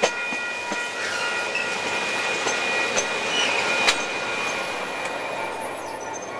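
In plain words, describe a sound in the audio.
A diesel locomotive engine drones as it passes.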